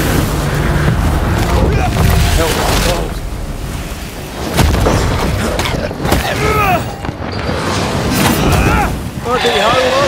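Magic blasts whoosh and crack in a fight.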